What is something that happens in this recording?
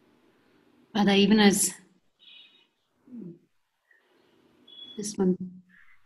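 A woman speaks briefly over an online call, heard through a small microphone.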